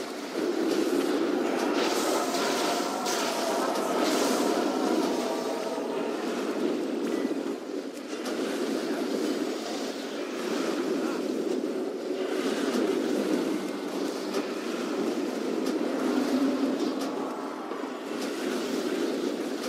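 Lightning spells crackle and zap in a video game battle.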